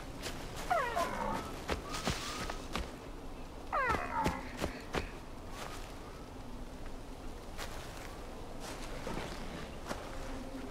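Footsteps rustle and swish through tall grass.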